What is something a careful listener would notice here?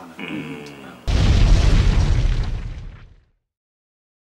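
A loud explosion roars and rumbles, then fades away.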